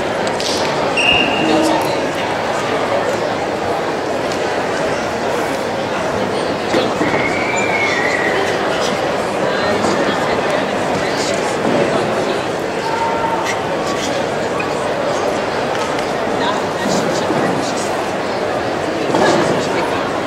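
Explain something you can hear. Karate fighters shout sharply as they strike.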